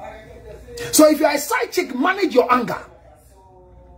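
A man speaks animatedly and close up.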